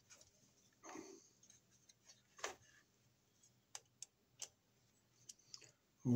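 A screwdriver scrapes on small screws.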